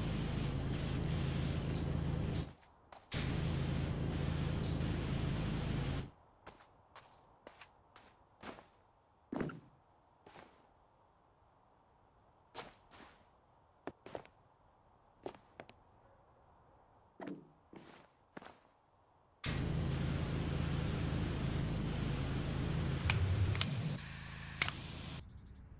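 A pressure washer sprays a steady, hissing jet of water.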